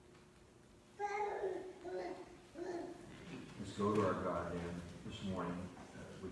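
An elderly man speaks calmly and clearly in a room with slight echo.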